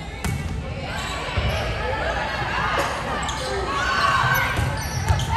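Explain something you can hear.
Young women shout and cheer with animation in a large echoing gym.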